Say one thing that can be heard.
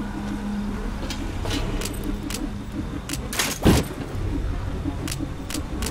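Menu clicks tick softly.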